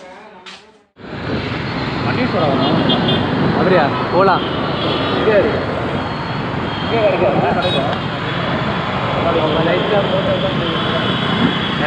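Traffic rumbles along a busy road.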